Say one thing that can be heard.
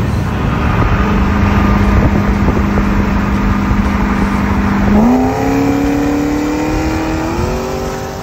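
A sports car engine drones alongside and climbs in pitch as it shifts gears.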